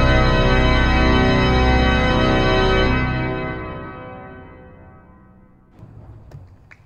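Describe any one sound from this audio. A pipe organ plays a loud, sustained chord that rings out and fades.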